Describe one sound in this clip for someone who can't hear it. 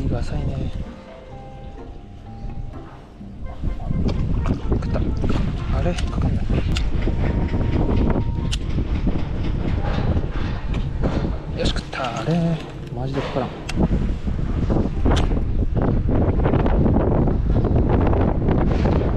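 A fishing reel clicks and whirs as its line is wound in.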